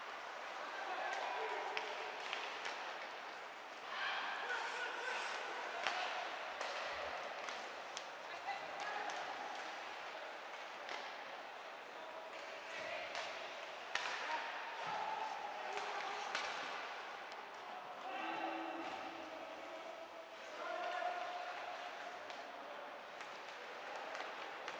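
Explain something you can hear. Skates scrape and swish across the ice.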